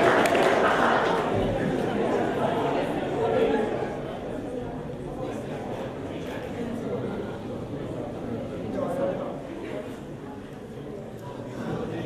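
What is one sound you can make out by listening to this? A crowd of young people murmurs quietly in an echoing hall.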